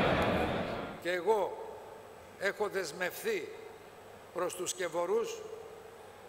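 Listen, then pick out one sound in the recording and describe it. An elderly man speaks firmly through a microphone in a large room.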